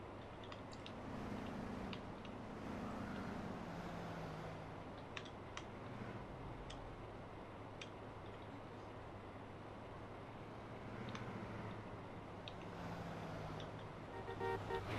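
A young man talks calmly into a microphone, close up.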